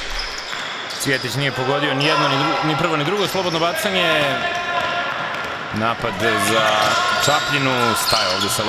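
A basketball bounces on a hardwood floor in an echoing hall.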